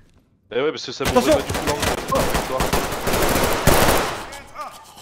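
A rifle fires rapid bursts of gunshots at close range.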